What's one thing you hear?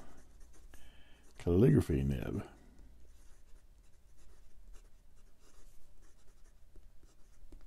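A pen nib scratches softly across paper.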